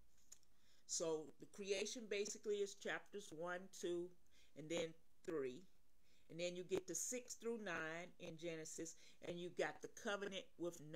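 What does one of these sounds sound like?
An older woman speaks with animation close to a microphone.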